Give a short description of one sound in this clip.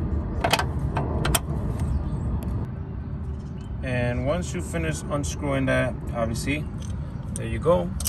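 Metal tools click and tap against car parts.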